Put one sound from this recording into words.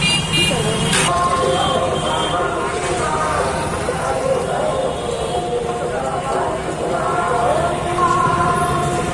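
A crowd of people chatters in a busy street outdoors.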